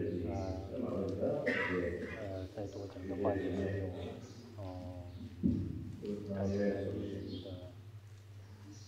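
A man speaks calmly into a headset microphone.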